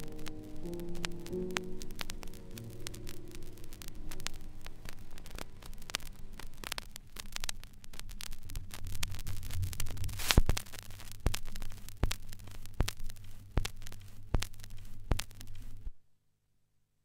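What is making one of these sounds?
An old record crackles and pops with surface noise.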